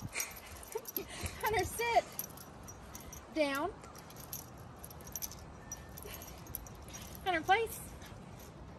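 A woman speaks to a dog in a high, cheerful voice nearby.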